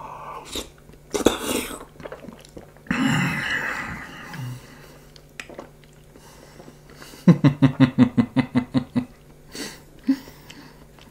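A young man slurps and chews food loudly.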